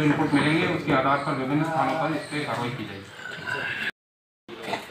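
A man speaks calmly into microphones close by.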